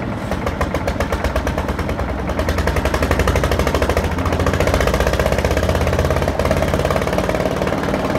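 Wet concrete slides and pours into a metal hopper.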